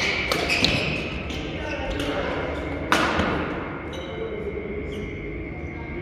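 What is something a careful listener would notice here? Sneakers squeak and thud on a hard court floor.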